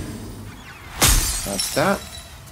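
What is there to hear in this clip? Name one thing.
A blade strikes with a loud clash.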